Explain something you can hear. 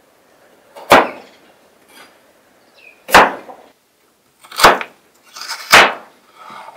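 A chef's knife chops through carrot onto a wooden cutting board.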